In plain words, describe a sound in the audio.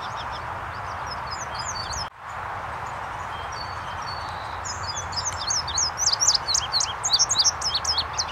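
A small songbird sings high, quick chirping notes close by, growing louder and busier.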